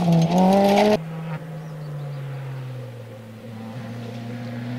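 A rally car engine drones in the distance.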